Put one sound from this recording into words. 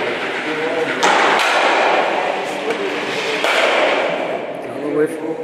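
A curling stone slides and scrapes across a hard floor.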